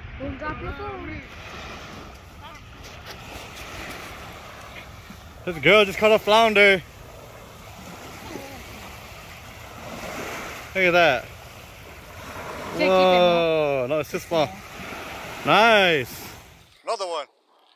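Small waves lap on the shore.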